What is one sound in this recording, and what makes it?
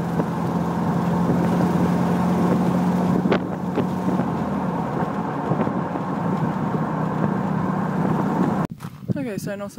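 Wind roars loudly over the microphone of a moving open vehicle.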